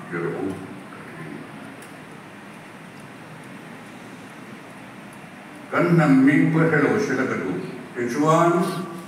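A man speaks through a microphone in an echoing hall.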